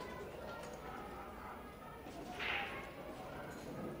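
A cue tip strikes a ball with a sharp click.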